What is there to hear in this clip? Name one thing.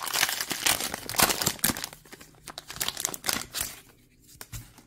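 A plastic wrapper crinkles and tears loudly.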